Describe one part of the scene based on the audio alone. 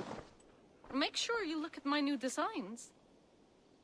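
A woman speaks calmly, heard up close.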